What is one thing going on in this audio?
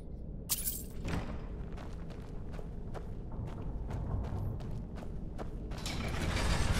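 Footsteps tread on stone in an echoing tunnel.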